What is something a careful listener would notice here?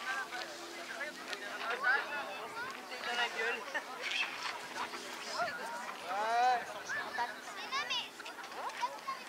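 Young men call out to each other across an open field, some way off.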